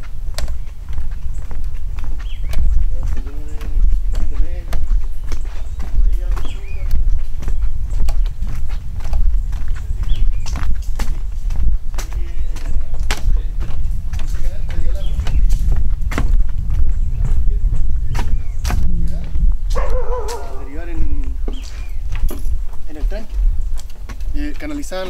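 Footsteps thud on wooden boards at a walking pace.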